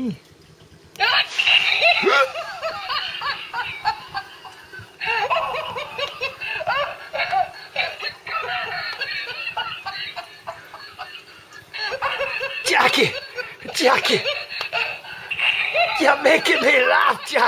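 A plush toy monkey plays a laugh through a small tinny speaker.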